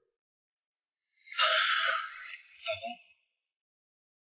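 A young woman cries out tearfully close by.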